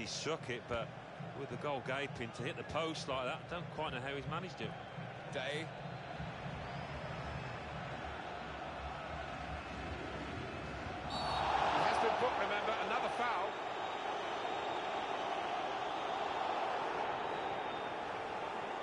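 A stadium crowd murmurs steadily and swells into a loud roar.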